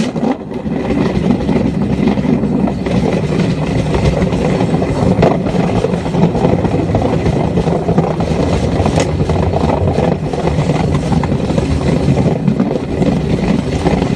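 Tyres rattle over rough gravel.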